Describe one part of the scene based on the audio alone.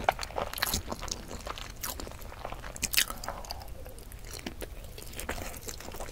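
A woman bites into a peeled boiled egg close to a microphone.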